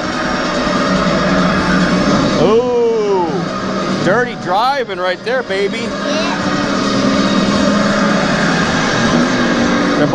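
Racing arcade machines roar with engine noise through loudspeakers.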